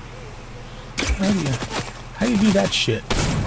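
A middle-aged man talks with animation, close to a microphone.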